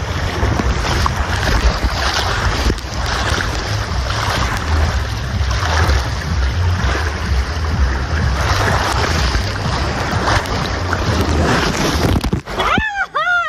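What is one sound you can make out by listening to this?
Water rushes and splashes loudly down a slide.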